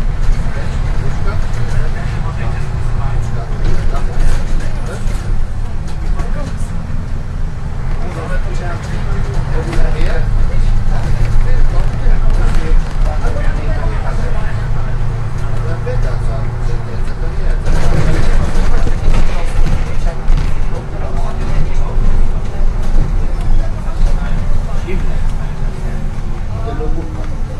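A bus body rattles and creaks over the road.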